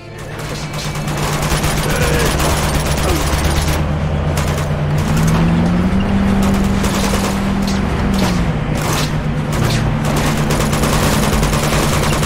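Rapid gunfire cracks repeatedly.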